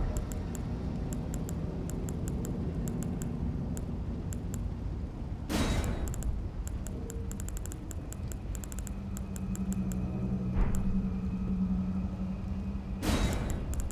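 Menu selections tick in quick runs of soft clicks.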